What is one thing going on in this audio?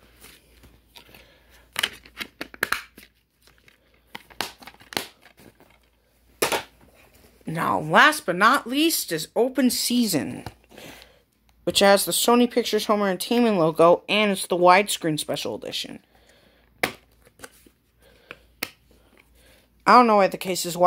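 A plastic disc case clicks open and shut.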